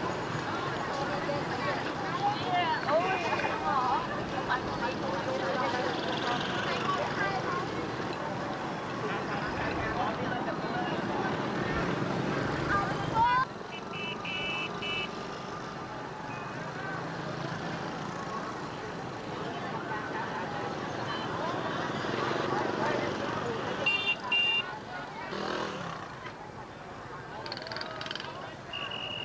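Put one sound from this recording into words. A crowd of young people chatters outdoors as they march.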